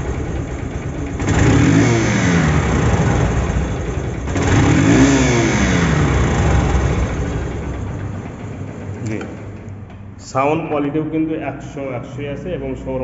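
A motorcycle engine idles with a deep, throaty exhaust.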